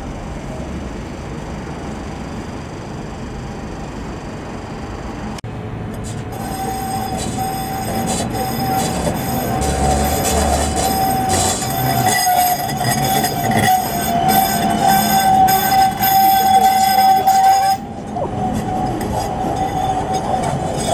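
A tram rolls slowly past close by on its rails.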